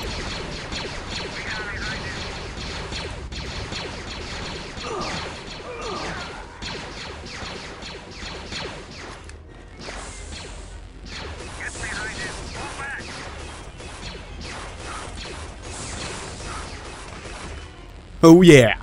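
Laser blasters fire in rapid, echoing bursts.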